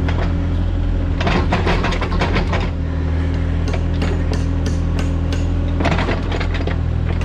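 Soil and roots scrape and crunch against an excavator bucket.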